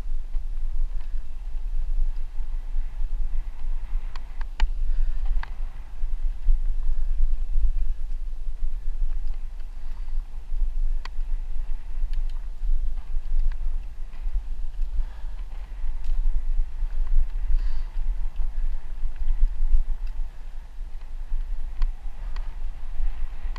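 Wind rumbles steadily across a moving microphone outdoors.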